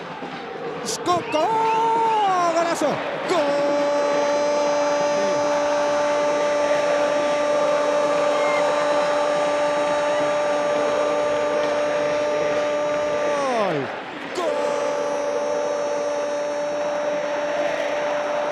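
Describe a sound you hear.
A large crowd cheers loudly in a stadium.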